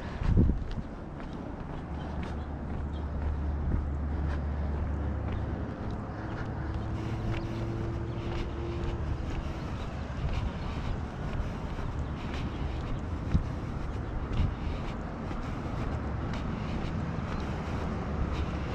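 Footsteps tap on a concrete pavement.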